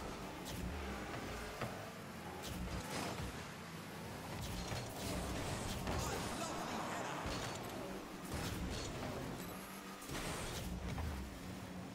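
A video game car's rocket boost roars.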